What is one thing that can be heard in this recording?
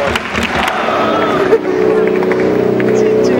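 A large crowd of football supporters chants together in open-air stands.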